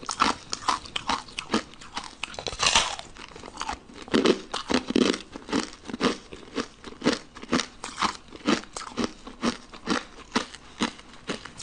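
A young woman chews and smacks wetly close to a microphone.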